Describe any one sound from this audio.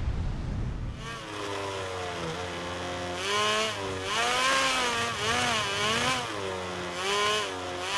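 A motorcycle engine roars at high revs, its pitch rising and falling with gear changes.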